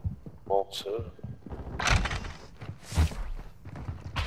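A wooden door creaks open and bangs shut.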